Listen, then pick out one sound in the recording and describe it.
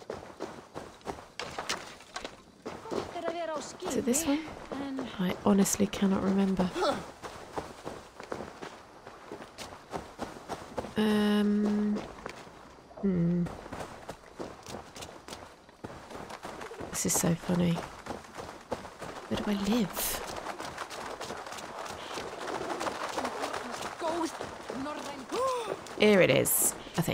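Footsteps crunch quickly over gravel and dirt.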